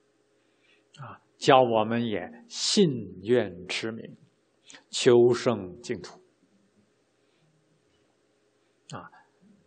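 A middle-aged man speaks calmly and slowly into a microphone.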